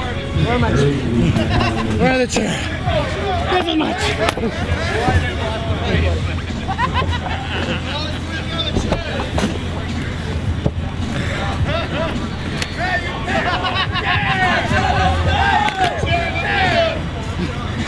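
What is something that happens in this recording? A crowd shouts and cheers outdoors throughout.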